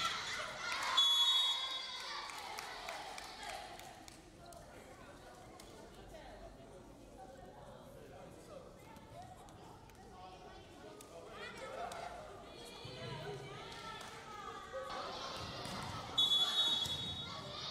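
Shoes squeak on a gym floor.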